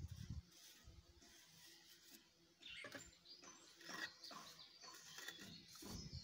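A trowel scrapes and taps on wet cement.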